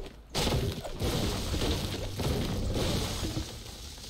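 A pickaxe strikes stone with sharp knocks.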